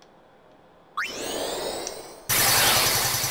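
A shimmering magic spell chimes and whooshes.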